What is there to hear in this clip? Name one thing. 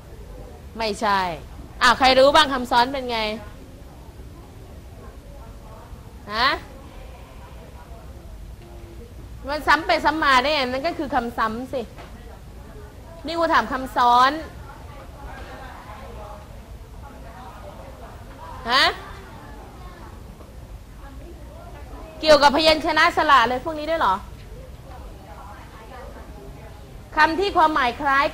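A young woman speaks with animation in short bursts through a clip-on microphone.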